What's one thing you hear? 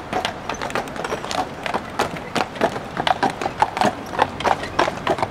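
A horse's hooves clop on pavement close by.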